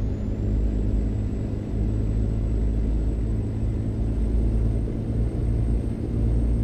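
A truck's diesel engine rumbles steadily from inside the cab.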